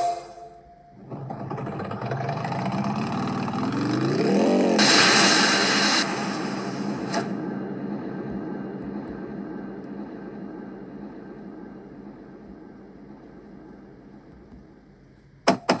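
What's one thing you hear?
A motorcycle engine revs up and roars, then fades.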